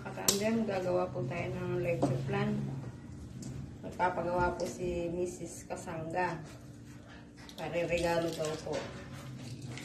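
A young woman talks calmly close by.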